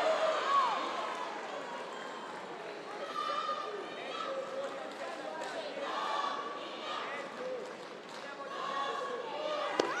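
A woman referee calls out short commands.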